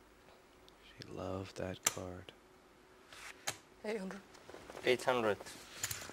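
Poker chips click and clatter as they are stacked.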